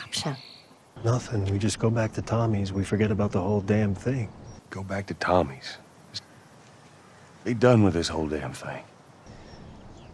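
A man speaks in a low, weary voice.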